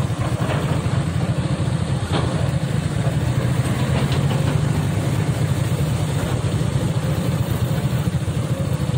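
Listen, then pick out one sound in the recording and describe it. Excavator engines rumble steadily nearby.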